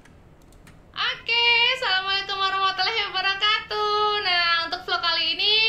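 A woman sings loudly and clearly into a microphone.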